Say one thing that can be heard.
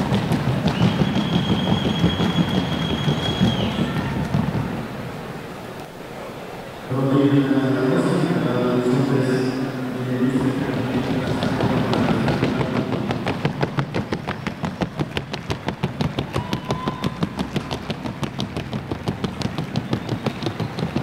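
A large crowd murmurs in a big echoing hall.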